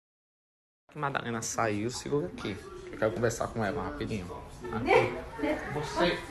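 A woman talks and laughs nearby.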